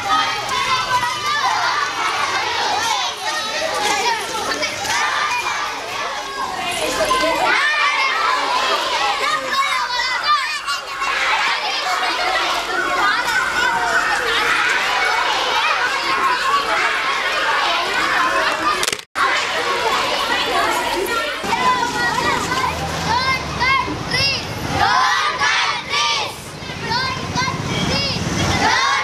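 A crowd of children chatters and shouts excitedly nearby, outdoors.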